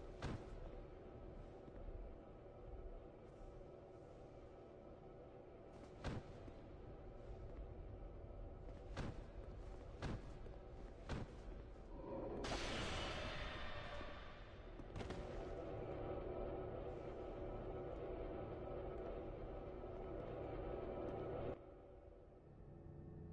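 Footsteps clink on a stone floor.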